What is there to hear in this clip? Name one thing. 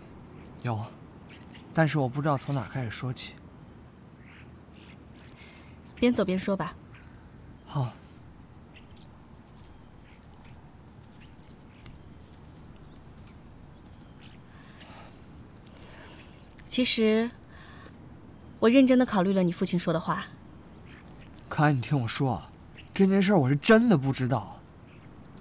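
A young man speaks calmly and quietly close by.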